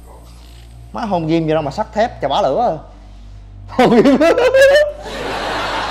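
A young man talks and laughs up close.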